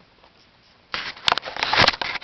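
A blanket rustles loudly close by.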